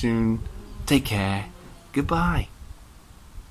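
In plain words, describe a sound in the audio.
A man speaks warmly and close up.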